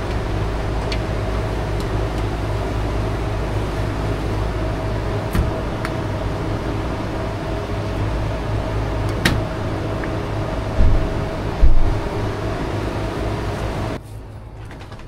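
A machine hums steadily up close.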